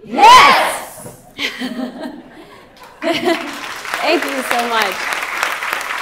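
A young woman speaks excitedly into a microphone.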